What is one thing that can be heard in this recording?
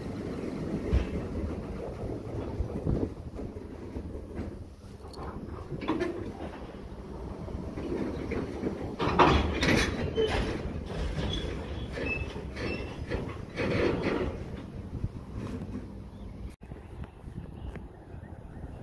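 Train wheels clatter and squeal over the rail joints.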